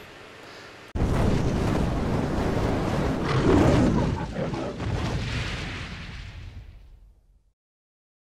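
A fireball roars and whooshes, then fades away.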